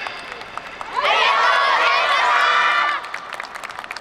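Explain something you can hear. A group of women chant loudly together in an open echoing stadium.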